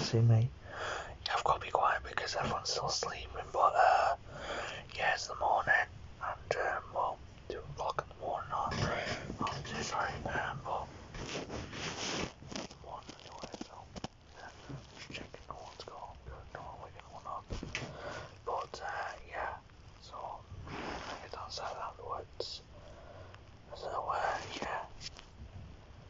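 A young man talks casually and close up, into a phone's microphone.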